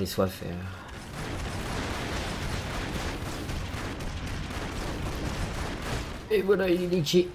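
An explosion booms and debris rumbles.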